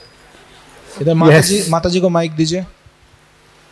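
An elderly man speaks warmly into a microphone over loudspeakers.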